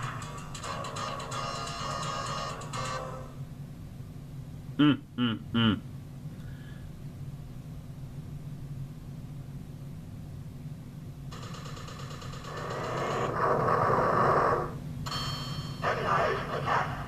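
Electronic arcade game music plays through a small speaker.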